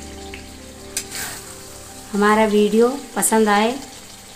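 A metal ladle clinks against a metal pan.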